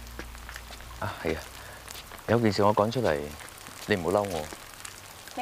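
A man speaks softly nearby.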